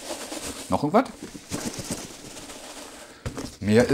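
Packing material crackles.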